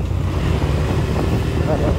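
A motorcycle engine approaches and passes.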